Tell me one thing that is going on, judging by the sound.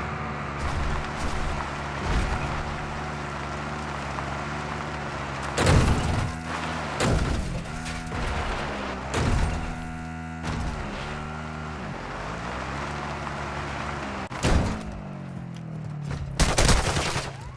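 A quad bike engine hums and revs over rough ground.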